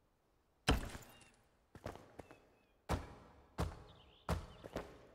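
Heavy stone blocks thud into place, each with a short echoing rumble.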